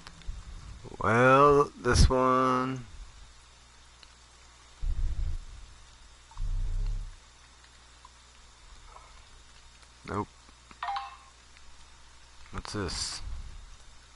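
A young man speaks with animation, close to a headset microphone.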